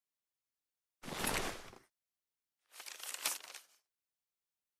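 A sheet of paper rustles.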